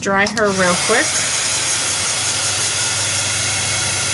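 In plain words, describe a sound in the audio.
A heat gun blows with a steady, loud whoosh.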